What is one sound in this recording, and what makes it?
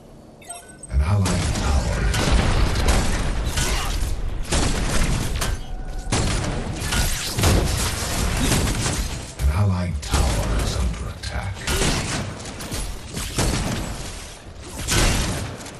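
Gunfire and energy blasts crackle and boom in a fast fight.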